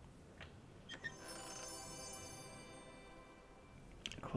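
A treasure chest opens with a shimmering chime.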